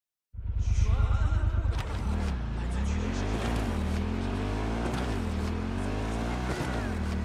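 A motorcycle engine rumbles and revs as it rides along.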